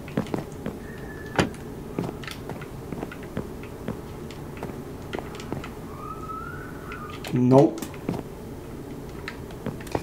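Footsteps tap quickly on wooden floors in a video game.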